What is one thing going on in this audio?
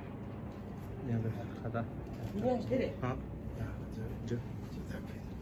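An elderly man speaks softly nearby.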